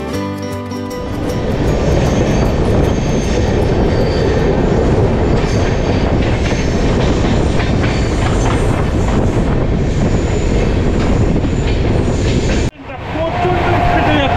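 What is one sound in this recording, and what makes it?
A train rumbles and clatters loudly along the tracks.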